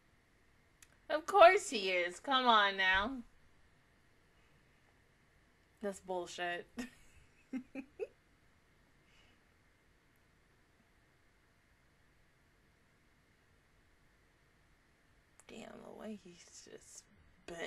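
A young woman speaks close into a microphone, in short bursts with pauses.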